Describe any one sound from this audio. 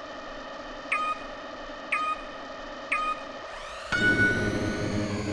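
Countdown beeps sound three times, then a higher beep.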